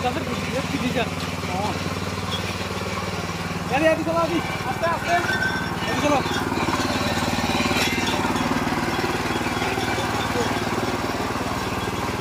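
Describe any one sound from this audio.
A small petrol engine idles steadily with a rapid chugging close by.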